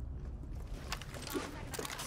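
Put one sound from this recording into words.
A grenade is tossed with a short clatter.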